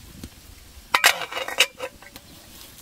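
A metal lid clatters onto a cooking pot.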